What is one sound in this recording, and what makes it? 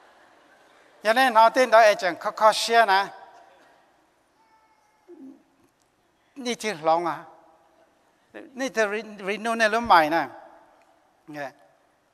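A middle-aged man speaks with animation through a microphone in a large hall.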